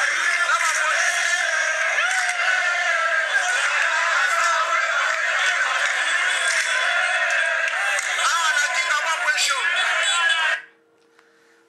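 A crowd shouts and clamours, heard through a small phone speaker.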